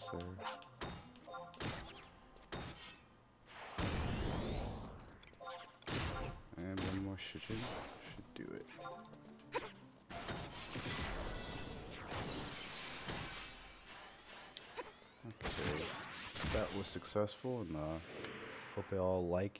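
Magic spells burst with shimmering whooshes.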